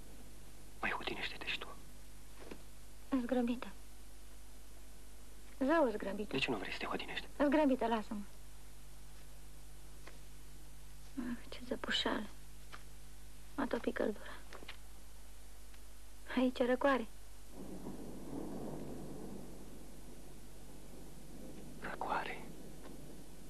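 A young man speaks quietly close by.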